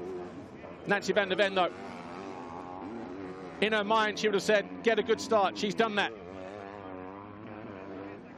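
Motocross bike engines rev and whine as riders race over dirt jumps.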